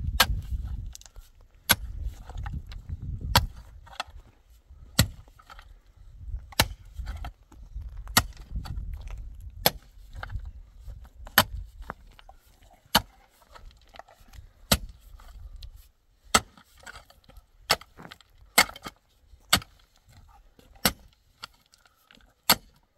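A pickaxe strikes stony ground in steady, repeated blows.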